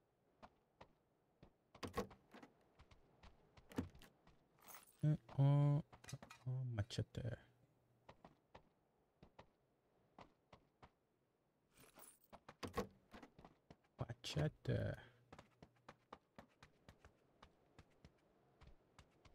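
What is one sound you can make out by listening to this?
Footsteps tap quickly on hard floors.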